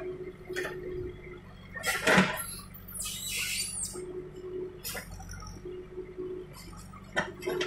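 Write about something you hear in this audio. A diesel backhoe loader engine runs at idle.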